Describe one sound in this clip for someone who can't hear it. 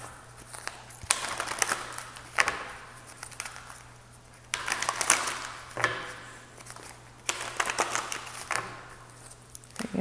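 Playing cards riffle and shuffle with a quick papery rustle.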